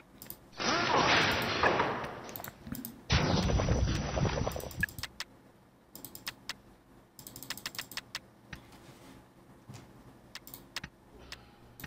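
Short game interface clicks sound as buttons are pressed.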